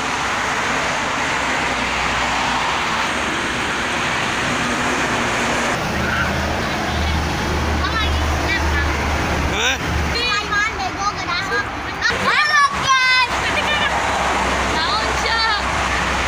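Heavy traffic rushes steadily past on a highway.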